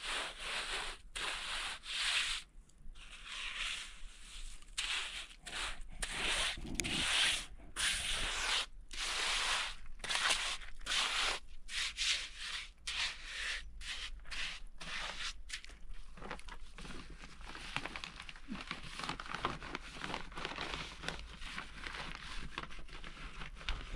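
A woman scrubs a stone surface with a brush, in short rasping strokes.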